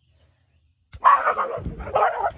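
Dogs bark nearby.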